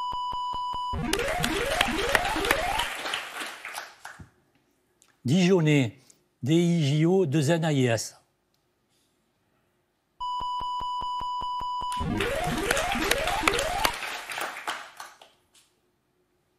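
People clap in applause.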